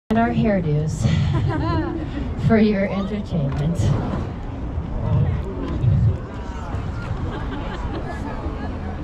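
A crowd of adults chats nearby outdoors.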